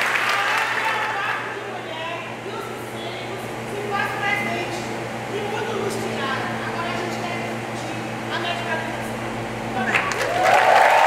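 A woman sings out loudly and forcefully.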